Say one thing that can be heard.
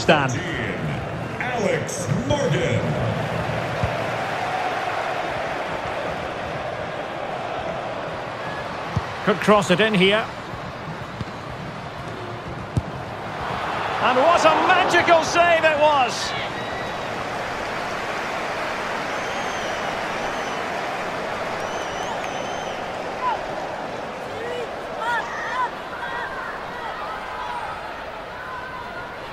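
A large stadium crowd roars and cheers steadily.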